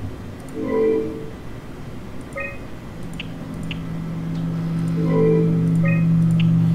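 An electronic error tone sounds twice.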